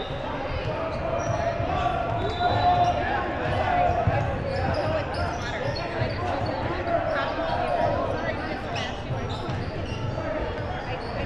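A crowd of young people chatter and call out in a large echoing hall.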